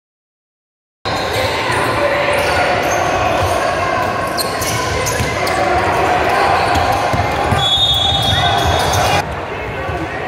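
Basketball shoes squeak on a wooden court in a large echoing gym.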